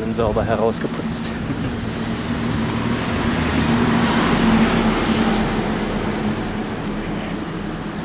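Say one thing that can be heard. A bus drives by on a nearby road.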